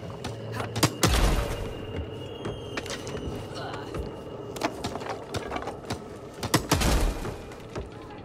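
A hammer knocks a board into place with sharp thuds.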